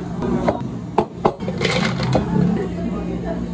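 Ice cubes clatter into a glass.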